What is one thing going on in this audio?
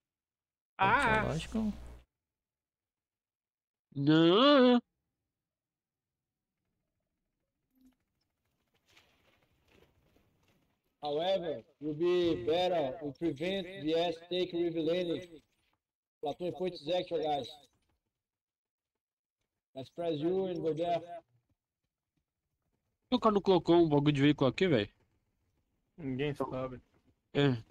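A young man talks animatedly into a close microphone, in short bursts with pauses.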